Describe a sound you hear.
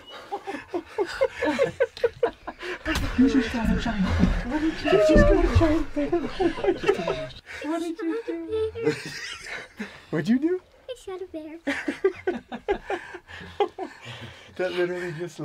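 A young girl laughs and squeals happily close by.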